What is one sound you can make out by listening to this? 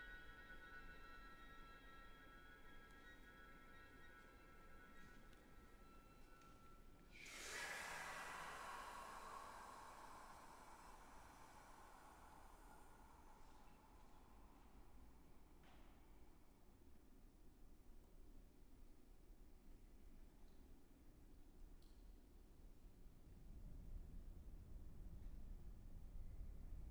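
A small chamber ensemble plays quiet, sustained notes in a reverberant hall.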